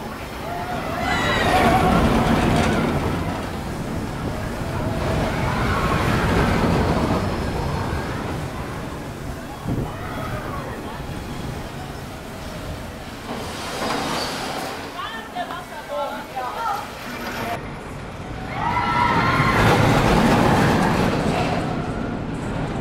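Riders scream as a roller coaster rushes by.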